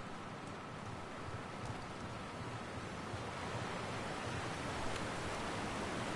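Water rushes nearby and grows louder.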